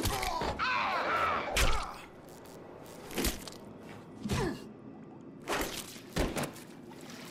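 Heavy blows land with loud thuds.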